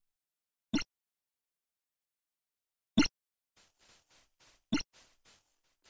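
Electronic menu click sounds play in a video game.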